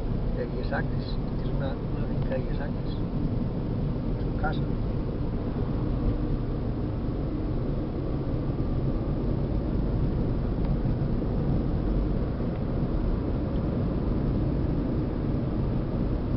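A car engine hums and tyres rumble steadily on the road, heard from inside the car.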